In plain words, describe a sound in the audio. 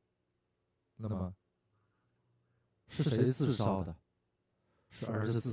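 An elderly man speaks in short bursts, calmly, into a microphone.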